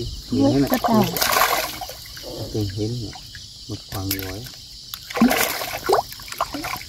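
A fish splashes in the water at the surface.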